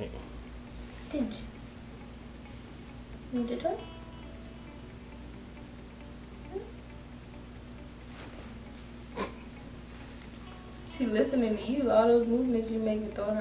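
A young woman talks to a dog in a high, playful voice nearby.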